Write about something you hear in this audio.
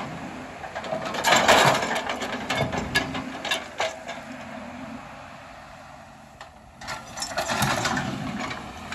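Earth and rocks scrape and tumble as an excavator bucket digs.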